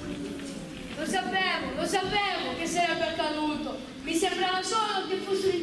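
A young boy sings loudly with feeling.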